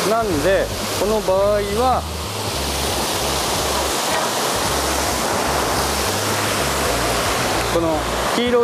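Water rushes steadily over a small weir.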